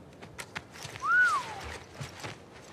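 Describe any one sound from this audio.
A young woman whistles a short rising and falling note.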